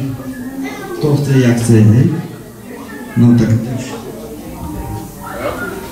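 A man speaks loudly into a microphone through a loudspeaker.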